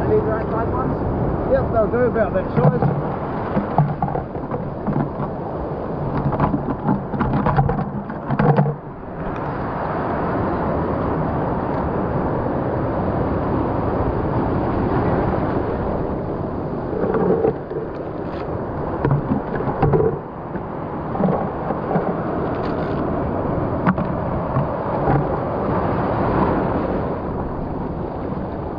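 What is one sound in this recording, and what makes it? Sea waves surge and wash against rocks nearby, outdoors.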